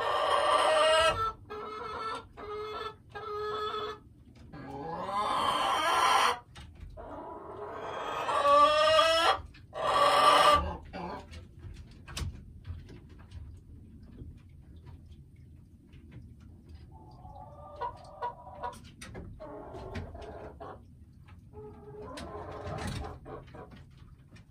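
A hen clucks and croaks loudly close by.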